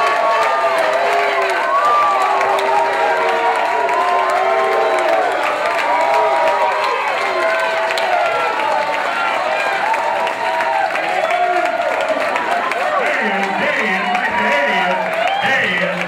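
A large crowd of men and women sings along loudly and cheerfully.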